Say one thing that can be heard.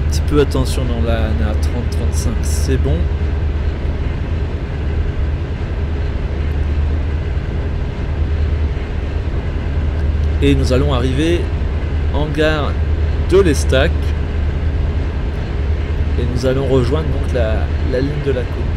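A train's electric motor hums steadily as it rolls along the rails.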